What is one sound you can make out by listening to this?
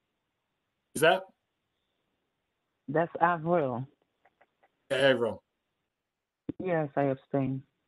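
A man speaks in short, separate phrases over an online call.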